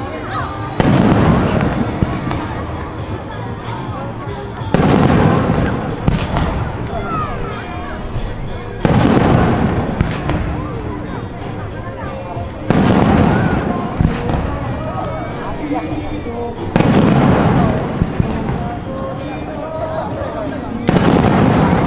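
Fireworks crackle and fizzle after each burst.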